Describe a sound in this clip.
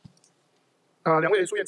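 A man begins speaking into a microphone.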